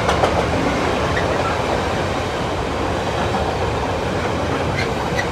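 A freight train rumbles past close by at speed.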